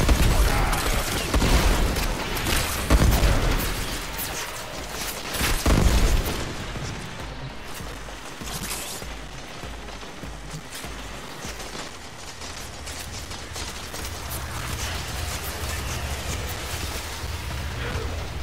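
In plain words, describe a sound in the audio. Gunfire and energy blasts crackle in quick bursts.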